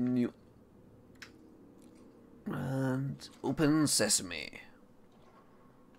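A metal lock clicks and turns open.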